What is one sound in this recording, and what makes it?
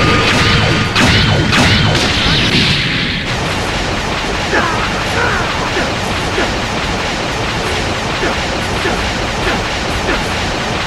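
Punches land with sharp impacts.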